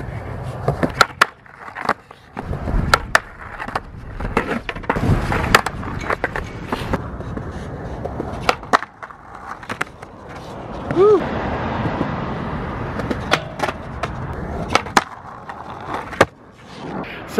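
Skateboard wheels clack sharply on concrete.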